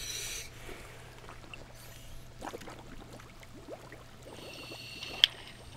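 Water splashes softly as a diver sinks below the surface.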